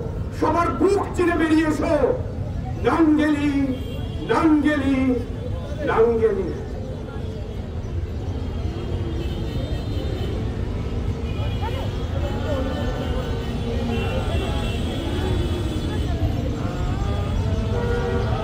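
A crowd murmurs and chatters in the open air.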